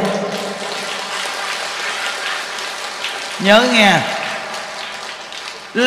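A large crowd claps hands together.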